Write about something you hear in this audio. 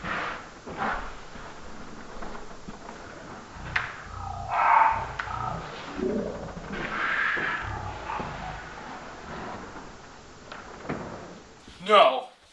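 A man talks nearby in a low, calm voice.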